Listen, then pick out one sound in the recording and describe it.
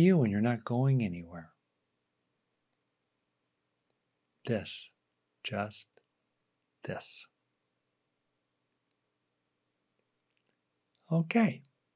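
A middle-aged man speaks calmly and closely into a microphone, in short bursts with pauses.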